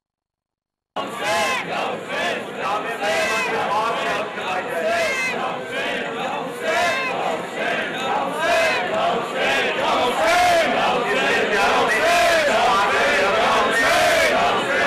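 A middle-aged man recites loudly through a microphone.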